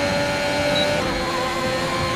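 A racing car engine drops pitch as the car shifts gear.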